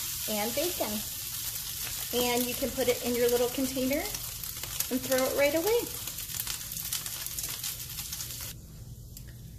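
Meat sizzles and crackles in a hot pan.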